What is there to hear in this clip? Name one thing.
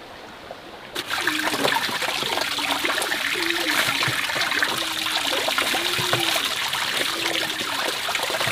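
Water pours from a pipe into a metal basin of water.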